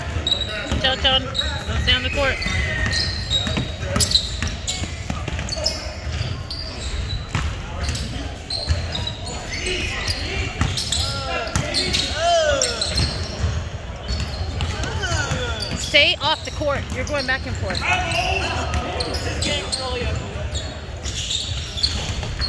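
A crowd of people talk and shout, echoing in a large hall.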